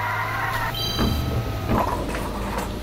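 A kart crashes with a loud thump and bangs.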